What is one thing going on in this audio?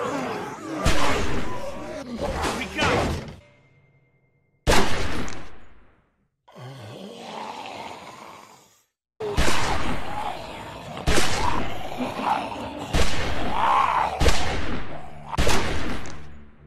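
Gunshots bang loudly, one after another.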